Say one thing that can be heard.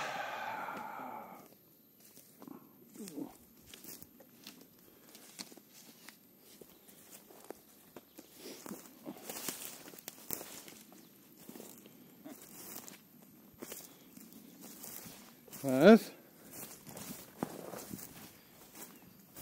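Footsteps crunch on dry twigs and forest floor.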